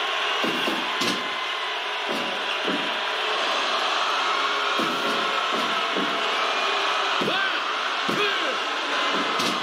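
Heavy thuds sound as bodies hit a wrestling ring mat.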